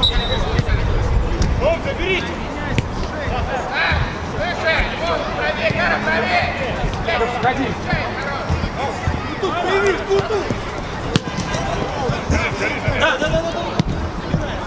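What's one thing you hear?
A football thuds as it is kicked on an outdoor pitch.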